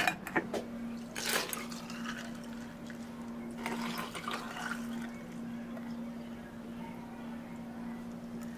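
Water pours over ice.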